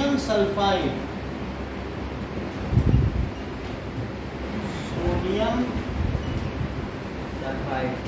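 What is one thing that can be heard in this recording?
A man speaks in a lecturing tone nearby.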